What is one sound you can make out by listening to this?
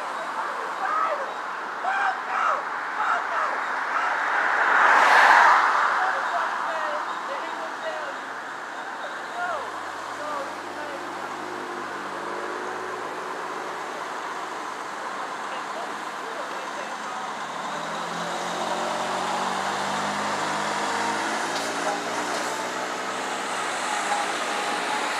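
Cars and trucks drive past on a road, their tyres hissing.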